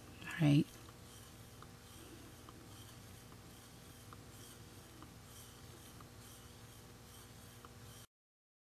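A wooden stick scrapes and taps softly against the inside of a plastic cup while stirring.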